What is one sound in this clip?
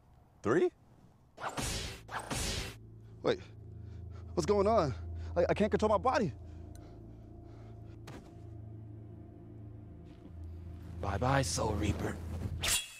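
A young man laughs and talks excitedly.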